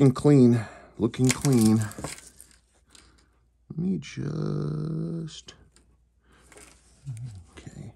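A metal watch bracelet clinks softly as it is picked up and handled.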